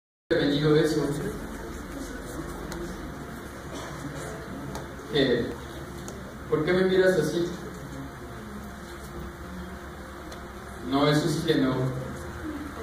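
A man speaks in a raised, dramatic voice in a large room.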